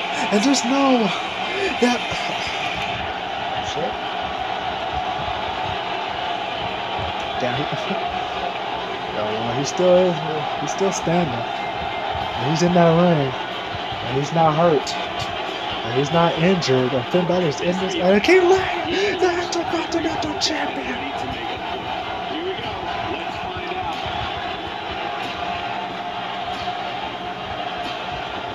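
A crowd cheers steadily through a television speaker.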